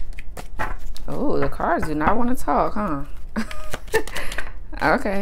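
A woman speaks softly and calmly close by.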